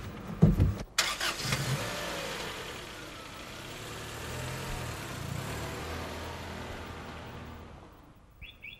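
A car drives off.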